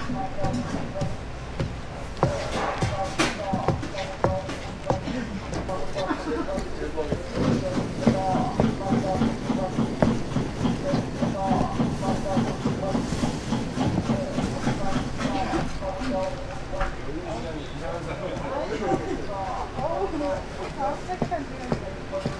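A knife chops through food onto a cutting board.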